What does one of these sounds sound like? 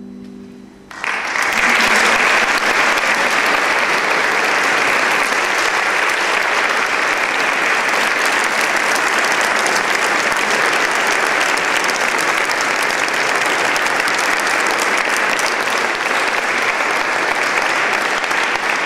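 A large audience applauds steadily in a large echoing hall.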